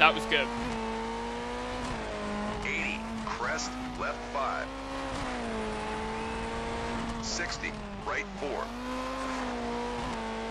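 A rally car engine revs high and steady, shifting pitch with the gears.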